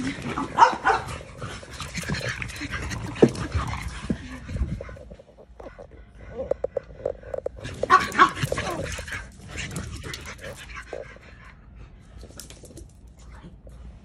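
Dogs' paws patter and scrabble on a hard floor.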